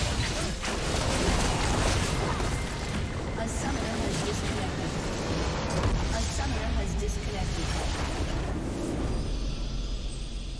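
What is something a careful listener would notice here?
Spells crackle and blast in a chaotic game battle.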